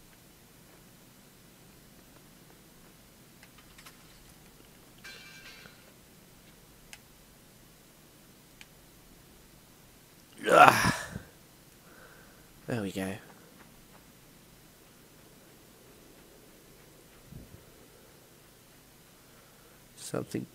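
Small footsteps patter softly on the ground.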